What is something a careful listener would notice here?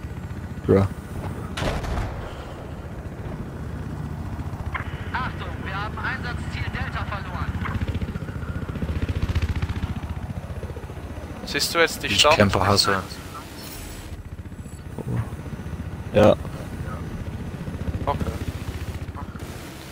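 A helicopter's engine and rotor drone steadily and low.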